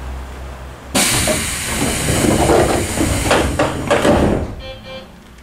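Train doors slide open with a loud rush of noise.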